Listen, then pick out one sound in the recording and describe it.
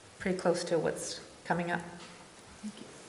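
A woman speaks near a microphone.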